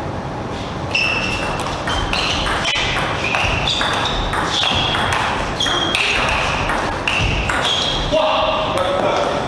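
A ping-pong ball clicks back and forth between paddles and table in a rally.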